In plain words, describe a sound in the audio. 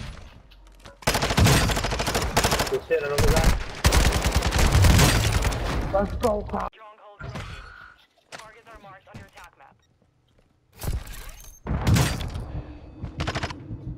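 Gunfire bursts out in rapid, loud volleys.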